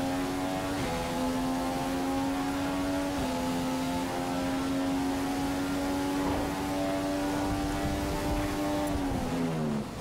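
A racing car engine screams at high revs, shifting up through the gears.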